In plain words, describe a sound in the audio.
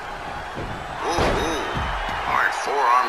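A body slams onto a wrestling ring with a heavy thud.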